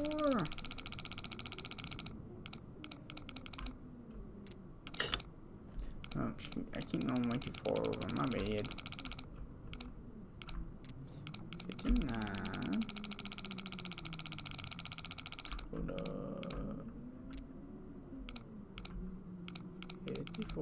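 A safe dial clicks as it turns.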